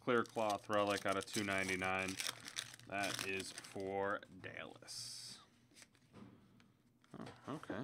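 A foil wrapper crinkles as it is torn open by hand.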